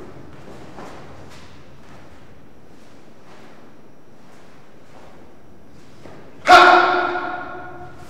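A martial arts uniform snaps sharply with a fast kick.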